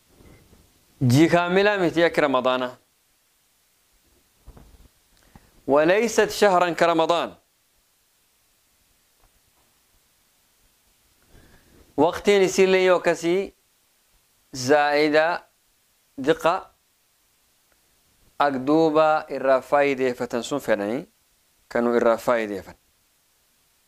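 A man recites in a melodic chanting voice, close to a microphone, with pauses between phrases.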